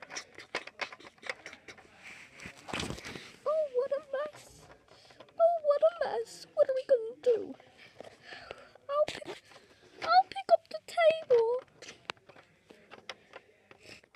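Small plastic toys tap and click against a hard surface.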